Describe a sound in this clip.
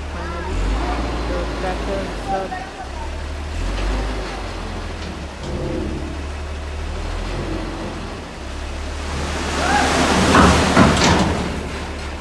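A diesel truck engine idles with a low rumble nearby.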